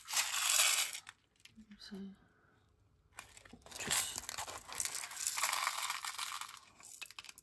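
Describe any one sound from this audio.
Small rhinestones clink and rattle in a plastic tray.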